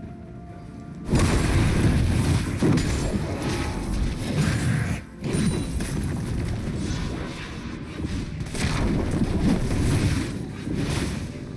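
Magic blasts and hits crackle and burst during a fight.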